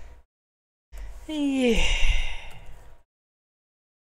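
A young woman squeals loudly.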